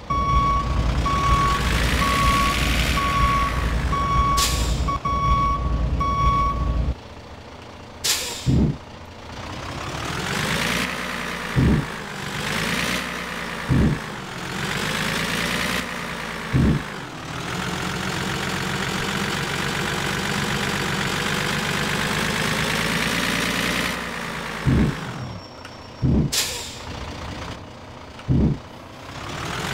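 A diesel semi-truck engine accelerates, rising in pitch through the gears.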